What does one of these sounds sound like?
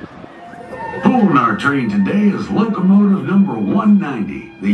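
A man speaks over a loudspeaker.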